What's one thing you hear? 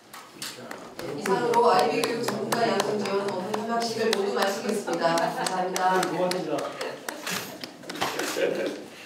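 Men and a woman exchange warm greetings nearby.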